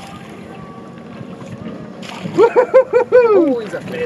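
Water splashes as a fish is netted beside a boat.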